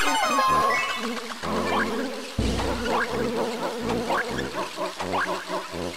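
Video game sound effects chirp and twinkle.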